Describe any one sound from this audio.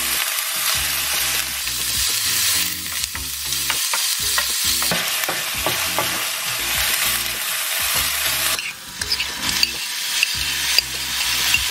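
A wooden spatula scrapes and taps against a metal pan.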